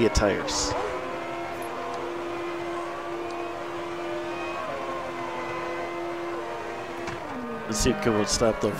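A racing car engine idles low and steady.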